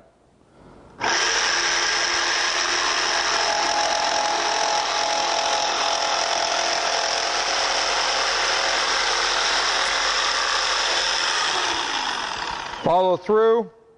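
An electric jigsaw buzzes loudly as it cuts through wood, then winds down.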